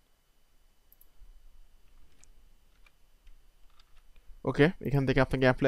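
A computer mouse clicks softly a few times.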